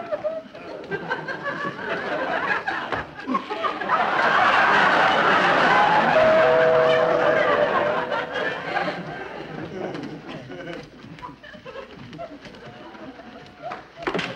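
High heels clack on a hard floor.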